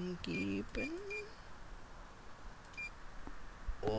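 A ticket machine gives short high beeps.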